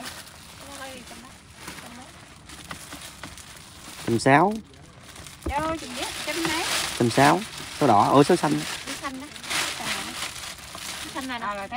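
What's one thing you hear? A plastic bag rustles and crinkles in handling.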